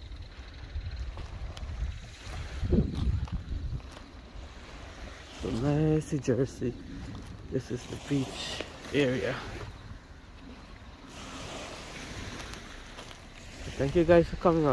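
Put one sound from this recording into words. Small waves lap gently at a sandy shore.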